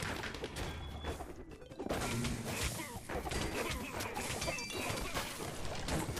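Magic bursts crackle and sparkle.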